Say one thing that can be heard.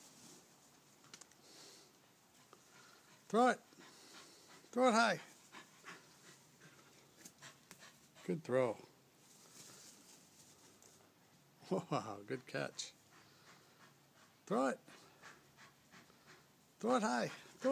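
A small dog runs across grass.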